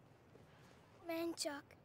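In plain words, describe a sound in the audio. A young girl speaks softly up close.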